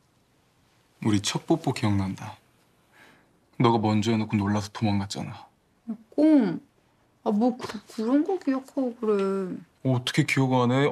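A young man speaks softly and close.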